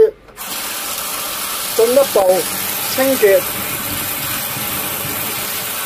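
Water runs steadily from a tap and splashes into a plastic colander.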